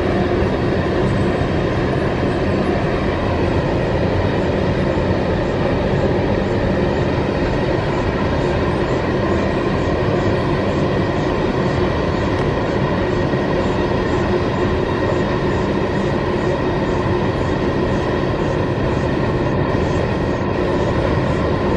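Steel wheels squeal on a curve of track.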